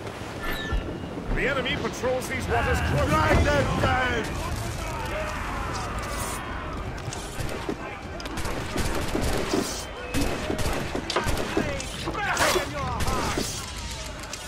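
Cannons fire with loud booms.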